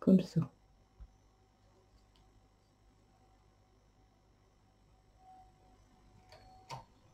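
A small tool clicks softly against metal knitting needles.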